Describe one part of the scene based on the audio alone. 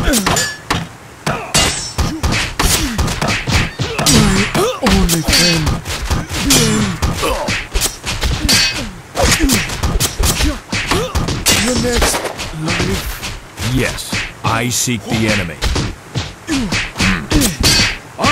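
Swords clash and strike again and again in a fight.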